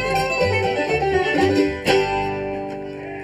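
A string band plays the last notes of a tune and stops.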